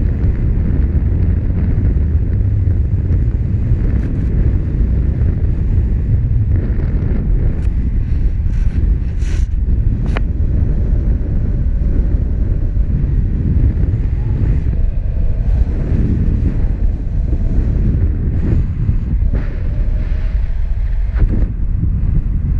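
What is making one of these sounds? Strong wind rushes and buffets loudly past, outdoors high in the air.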